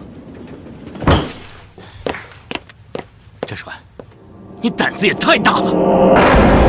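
A man speaks sternly, close by.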